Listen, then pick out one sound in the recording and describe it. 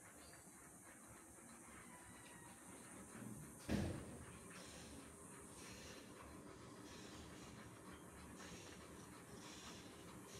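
A dog pants steadily nearby.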